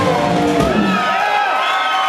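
A live band plays loudly in a hall and stops.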